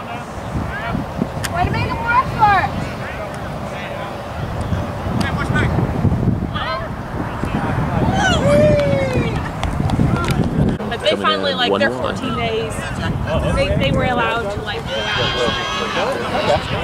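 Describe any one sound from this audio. Young people shout to each other across an open field outdoors.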